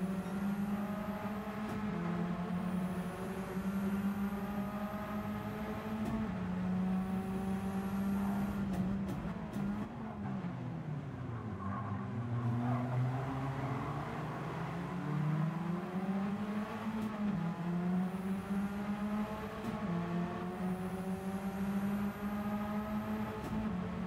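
A racing car engine roars loudly, revving up through the gears and dropping in pitch while braking.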